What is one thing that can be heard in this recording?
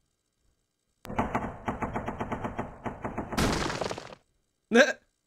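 Rapid video game gunfire rattles.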